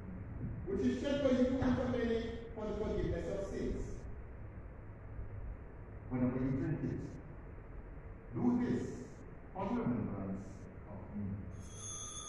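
A man speaks slowly and solemnly, heard at a distance in an echoing room.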